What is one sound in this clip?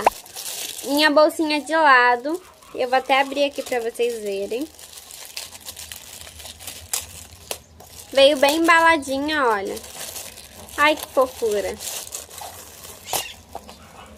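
Plastic wrapping crinkles in hands.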